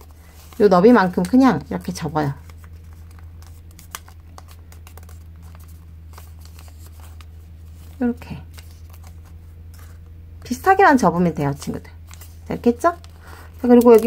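Paper crinkles and rustles softly as it is folded by hand.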